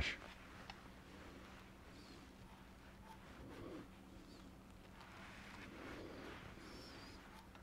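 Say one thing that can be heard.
A tool scrapes softly against spinning wood.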